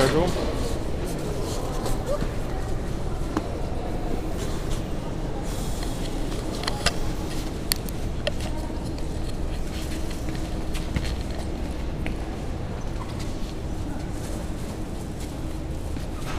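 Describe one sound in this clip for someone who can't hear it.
Voices murmur in a large echoing hall.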